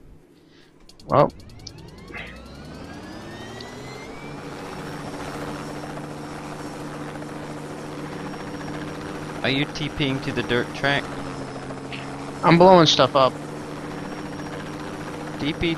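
A motorbike engine starts, revs up and then drones steadily.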